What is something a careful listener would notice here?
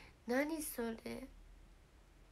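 A young woman speaks brightly in a high voice, close to a microphone.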